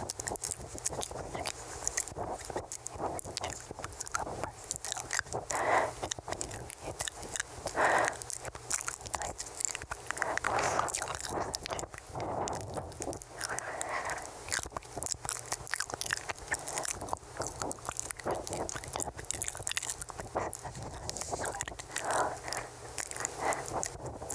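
A young woman whispers softly and very close into a microphone.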